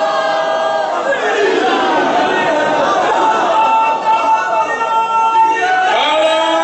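A man speaks loudly and passionately into a microphone, heard through loudspeakers in an echoing hall.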